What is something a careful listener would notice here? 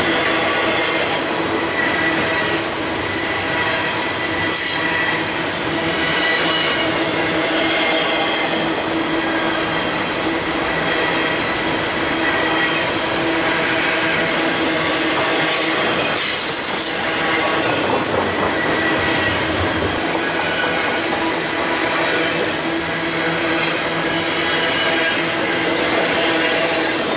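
Steel wheels squeal and clatter on the rails.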